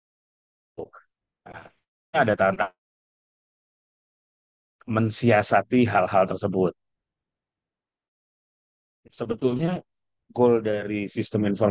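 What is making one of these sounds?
A man speaks calmly through an online call, in short phrases with pauses.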